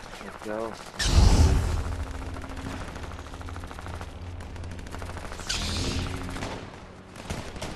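A lightsaber hums and buzzes.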